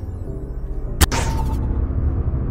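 A ray gun fires with a sharp electric zap.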